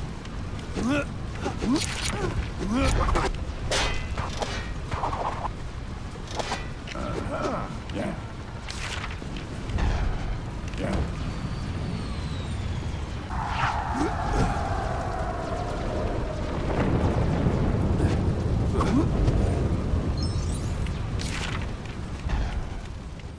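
Video game sound effects clatter and chime.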